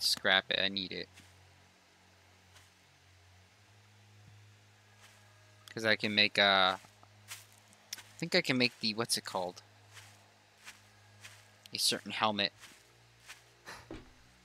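Footsteps swish through grass and crunch on gravel.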